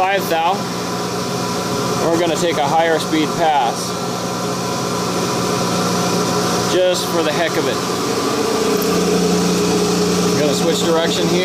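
A machine motor hums steadily as a pulley spins.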